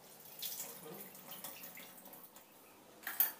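Water splashes as it is poured into a metal sink.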